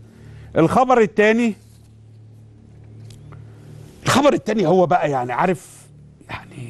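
A man speaks clearly into a microphone, reading out in a calm, steady voice.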